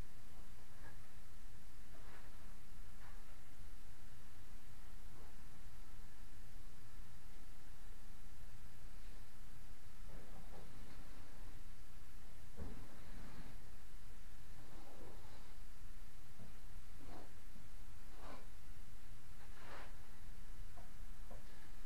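A tool scrapes softly against a wall.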